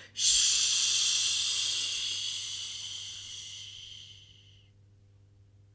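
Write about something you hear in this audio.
A woman makes a long hushing sound close by.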